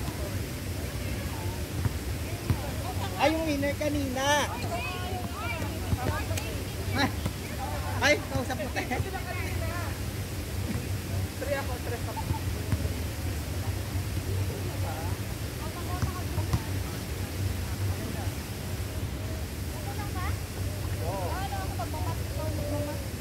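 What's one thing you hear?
A ball thuds on hard pavement.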